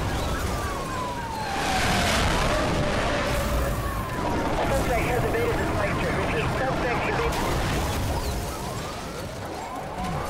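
A car crashes and tumbles with a loud metallic bang.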